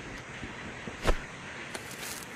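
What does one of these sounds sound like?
A lighter flame flares up with a short hiss.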